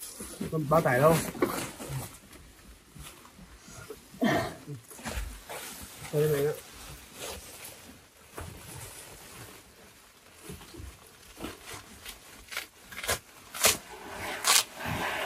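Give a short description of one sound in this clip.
Plastic sacks rustle and crinkle as they are handled.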